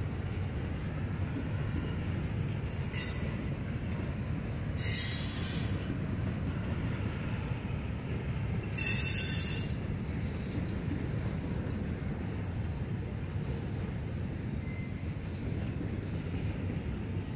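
A freight train rumbles steadily along the tracks nearby.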